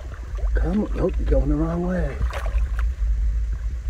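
A fish thrashes and splashes in the water.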